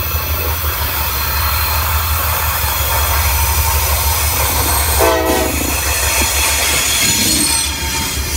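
A diesel locomotive rumbles steadily as it approaches and passes close by.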